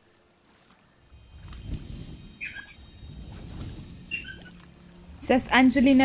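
Water sloshes as someone wades through it.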